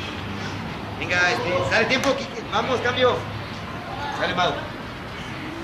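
A man talks loudly close by.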